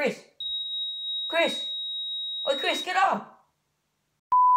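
A teenage boy speaks casually, close by.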